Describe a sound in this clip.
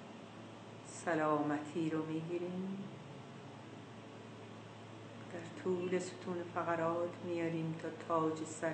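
An older woman speaks slowly and calmly, close to a microphone, with long pauses.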